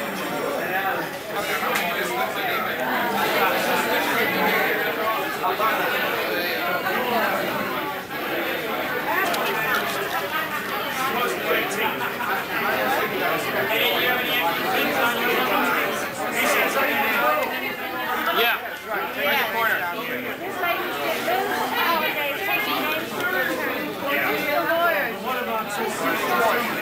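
A crowd of men and women chatter loudly close by.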